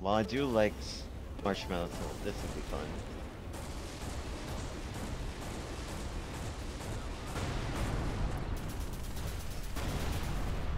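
A spaceship engine hums with a low, steady rumble.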